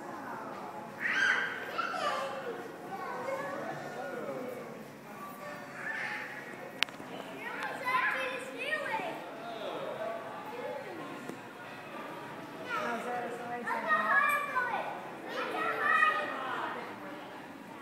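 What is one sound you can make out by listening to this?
A young child shouts and squeals.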